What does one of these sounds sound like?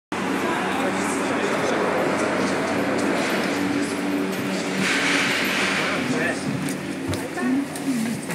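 Cable car machinery rumbles steadily nearby.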